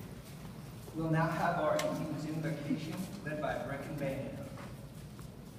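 A man speaks briefly in a low voice close by.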